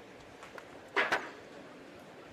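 A metal boule lands with a sharp clack.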